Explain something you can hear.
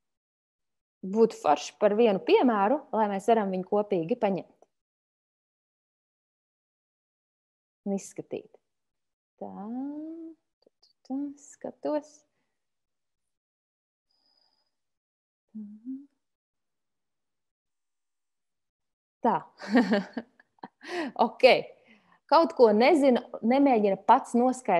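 A young woman speaks calmly through an online call, pausing now and then.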